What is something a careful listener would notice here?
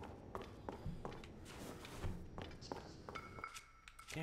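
A game character's footsteps crunch on snow.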